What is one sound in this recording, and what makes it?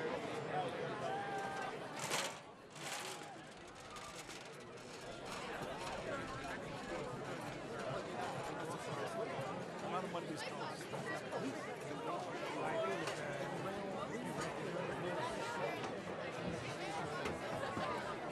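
A marching band plays on the field.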